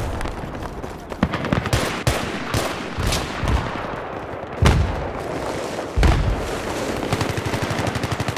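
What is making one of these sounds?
Gunshots and explosions crack and boom in the distance.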